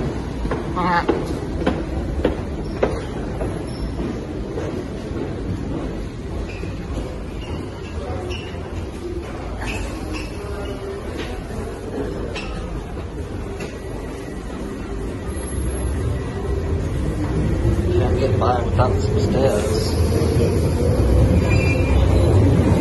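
Footsteps echo on a hard floor in a tiled passage.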